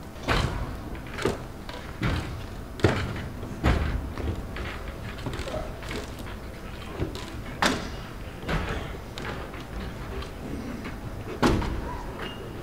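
Wooden staves thump on a stage floor, echoing in a large hall.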